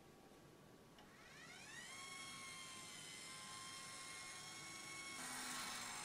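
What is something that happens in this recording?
A telescope mount's motor whirs, rising in pitch and then holding a steady whine.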